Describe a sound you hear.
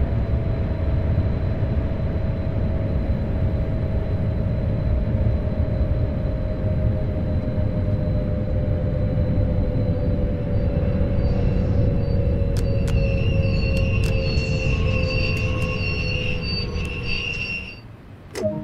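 An electric motor hums and slowly drops in pitch as a train slows.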